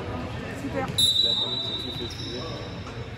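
A referee's whistle blows sharply in an echoing hall.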